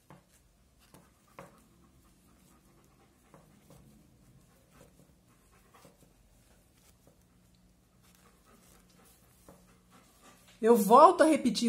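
Knitting needles click and tap softly against each other.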